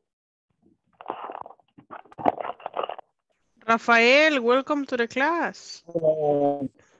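A woman speaks with lively, sing-song intonation through a headset microphone over an online call.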